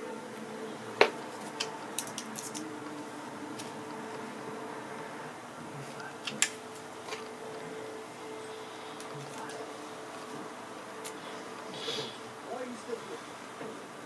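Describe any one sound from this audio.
Small knocks and clicks come from handling carved pieces.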